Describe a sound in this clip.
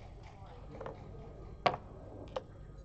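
Game pieces clack onto a board.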